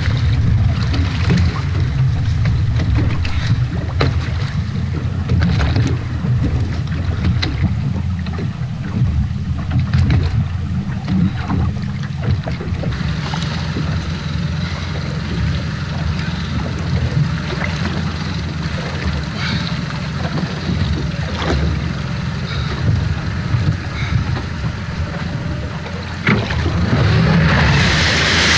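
Wind buffets the microphone outdoors on open sea.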